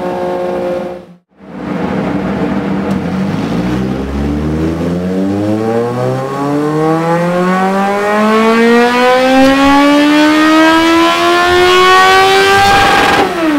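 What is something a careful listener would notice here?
A motorcycle engine cuts out briefly, then revs up with a steadily rising roar.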